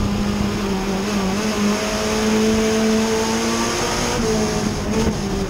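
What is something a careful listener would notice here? A race car engine roars loudly at high revs, heard from inside the car.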